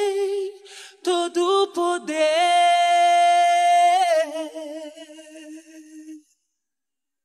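A young woman sings into a microphone, holding a long note.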